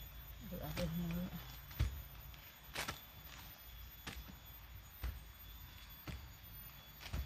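A stick digs and scrapes into soft soil.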